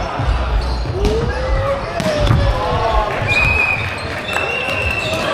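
A ball thumps.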